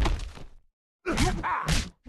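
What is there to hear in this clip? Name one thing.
An energy blast crackles and whooshes.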